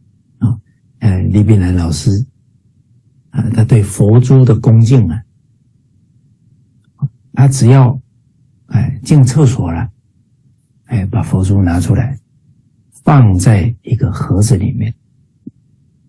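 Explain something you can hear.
A middle-aged man speaks with animation over an online call, in short bursts with pauses.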